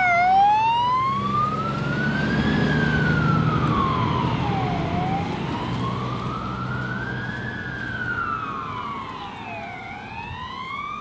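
A fire engine's diesel engine rumbles as it pulls away.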